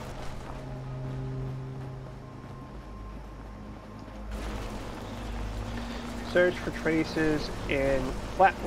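Footsteps crunch on a gravelly road.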